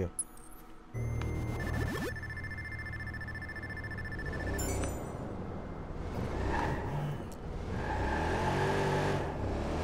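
A car engine hums and rumbles as the car drives.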